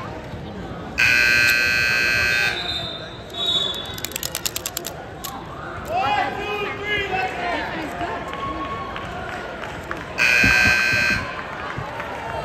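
A loud buzzer sounds twice in a large echoing hall.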